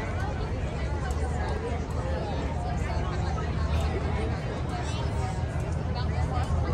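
A crowd of people chatters outdoors along a street.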